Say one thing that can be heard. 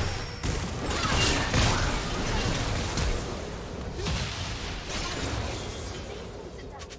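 Magic spells burst and crackle in a fast fight.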